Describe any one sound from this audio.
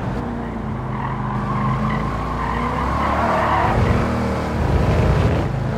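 A racing car engine roars and revs higher as the car speeds up.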